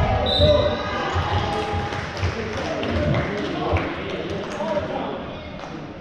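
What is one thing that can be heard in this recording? Young men call out to each other across the court.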